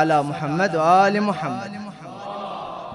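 A man chants loudly in a melodic voice nearby.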